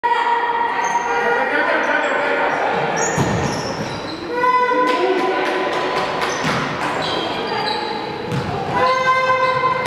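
Sneakers squeak and thud on a hard sports hall floor in a large echoing hall.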